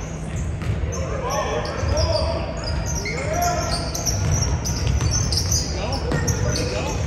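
Young players shout and call to each other in a large echoing gym.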